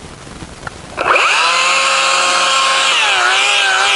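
A chainsaw engine roars steadily while cutting into a tree trunk, dipping slightly in pitch as it bites.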